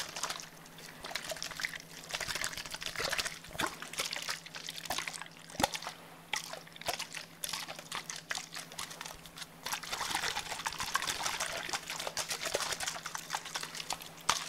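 Fingers tap and rub on a plastic bottle close up, with crinkly crackles.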